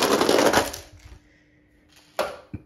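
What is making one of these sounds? A toy truck lands with a clatter on a wooden floor.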